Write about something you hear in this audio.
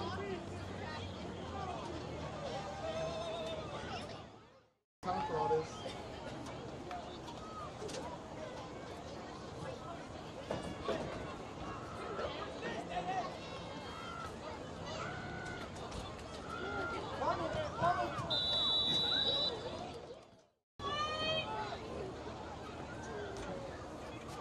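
A crowd of adults and children chatters and calls out outdoors.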